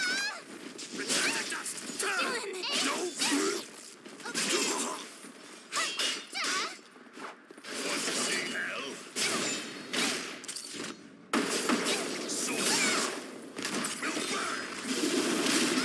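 Crackling energy bursts and whooshes.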